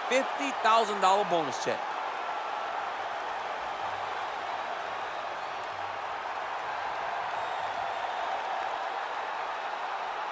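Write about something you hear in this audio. A large crowd roars steadily in a big echoing arena.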